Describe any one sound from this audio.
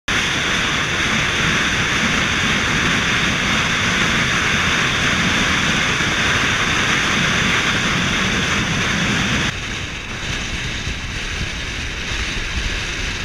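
Wind rushes loudly past the car.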